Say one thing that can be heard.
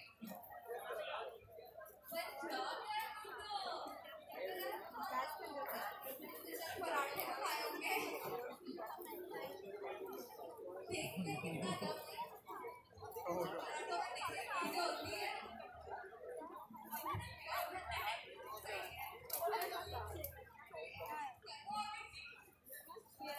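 A crowd chatters outdoors.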